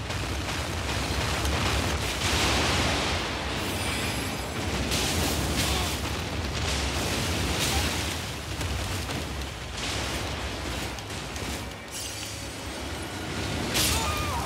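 A large beast roars and stomps heavily.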